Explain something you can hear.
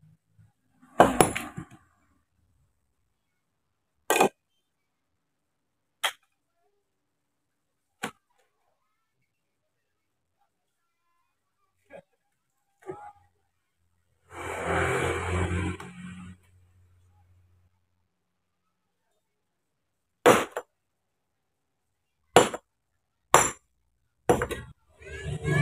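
A hammer strikes stone with sharp, ringing knocks at uneven intervals.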